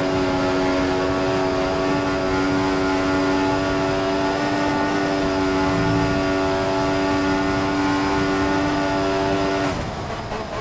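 A racing car engine screams at a steady high pitch at full speed.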